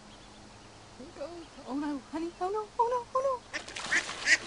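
A duck quacks repeatedly nearby.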